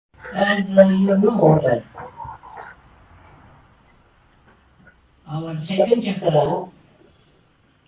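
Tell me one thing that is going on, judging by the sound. An elderly woman speaks slowly and calmly into a microphone, with pauses.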